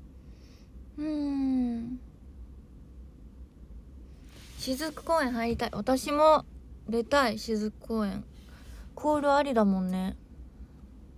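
A young woman talks close to a microphone in short bursts, with animation.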